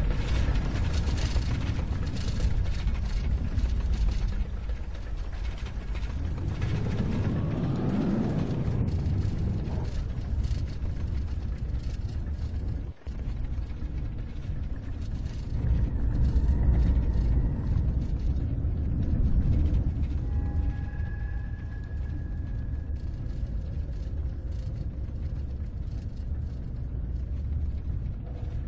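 A roller coaster train rumbles along its track.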